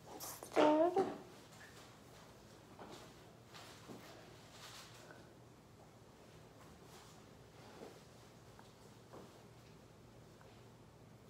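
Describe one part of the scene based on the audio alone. Hair rustles softly as hands gather and twist it.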